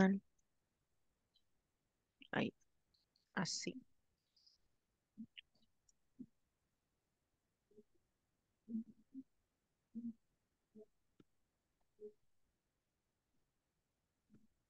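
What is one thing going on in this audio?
A woman speaks briefly and quietly through an online call.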